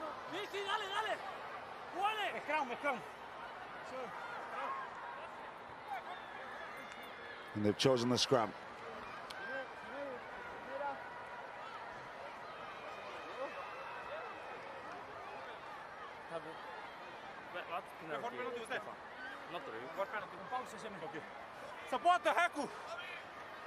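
A stadium crowd murmurs and cheers in the distance.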